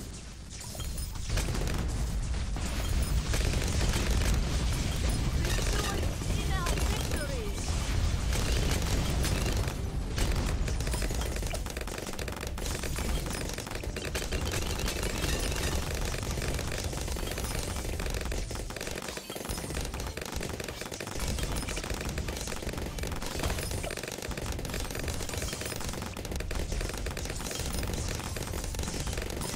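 Game weapons fire and explode in a steady barrage.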